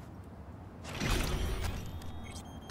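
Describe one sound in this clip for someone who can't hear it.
A metal door slides open with a loud whoosh.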